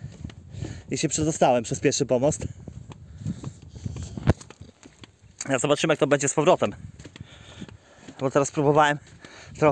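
A middle-aged man talks calmly close by.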